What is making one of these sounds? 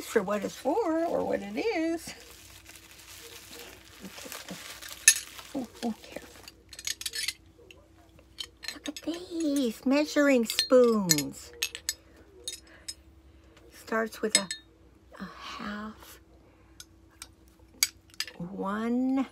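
An older woman talks with animation close to the microphone.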